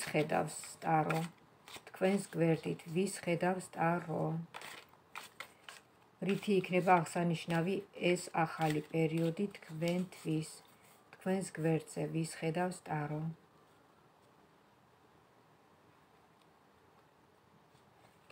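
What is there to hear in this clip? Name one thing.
Playing cards rustle and flick as they are shuffled by hand.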